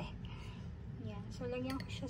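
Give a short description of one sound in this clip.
A fork clinks against a metal bowl.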